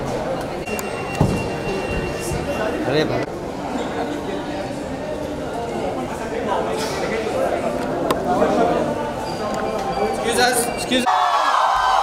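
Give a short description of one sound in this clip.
A crowd of people chatters and murmurs close by in an echoing hall.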